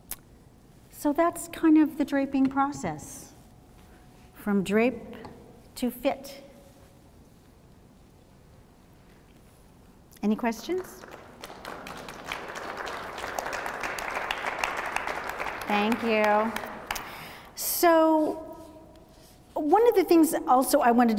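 A woman speaks with animation in a large room.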